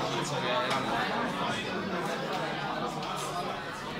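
Hands shuffle a stack of cards.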